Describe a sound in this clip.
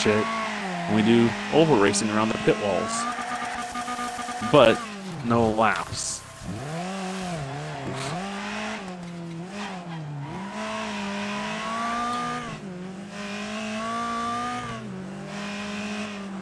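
A racing car engine revs and whines steadily, rising and falling with gear changes.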